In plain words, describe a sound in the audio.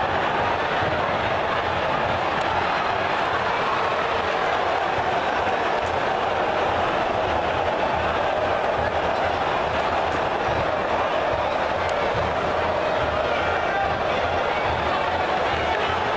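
A large stadium crowd roars and chants steadily all around.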